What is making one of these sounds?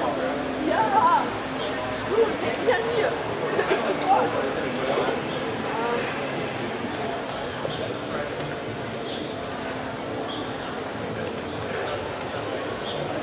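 Electronic music plays through loudspeakers outdoors.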